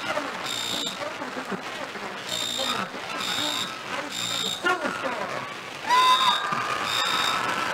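A crowd chatters in the stands.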